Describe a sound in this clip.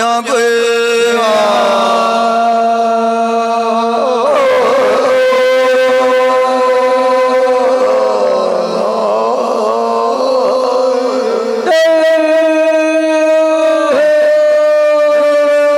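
Several men sing together loudly through microphones and loudspeakers.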